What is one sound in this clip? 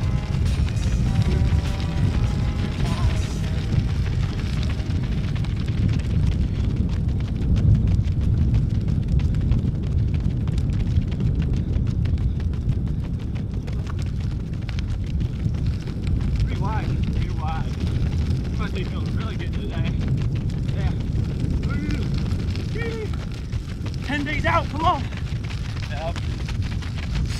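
Running shoes pad steadily on a paved path.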